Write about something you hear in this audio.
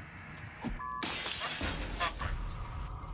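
A door is pushed open with a loud rush of noise.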